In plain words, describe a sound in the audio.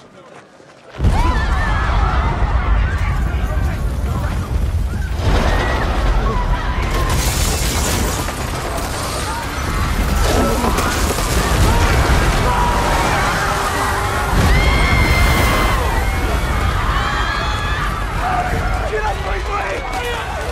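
A building collapses with a deep, loud rumble.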